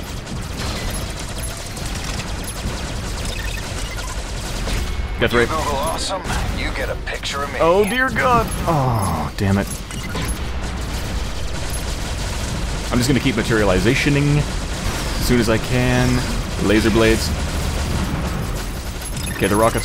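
Laser weapons fire in a video game.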